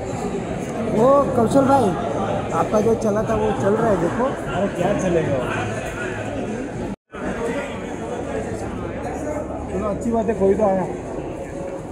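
Men and women call out loudly nearby.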